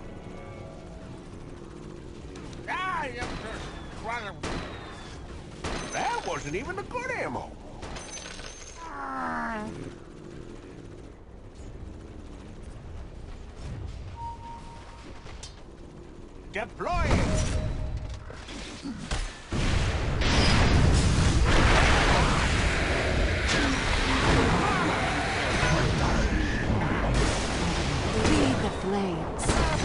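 A young man talks into a microphone close by.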